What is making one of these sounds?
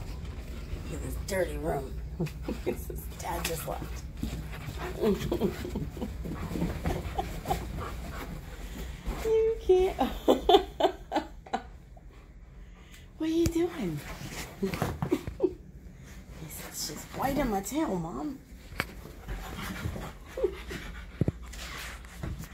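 Dogs growl and grumble playfully, close by.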